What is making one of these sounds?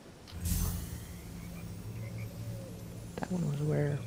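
A magical energy beam hums and shimmers.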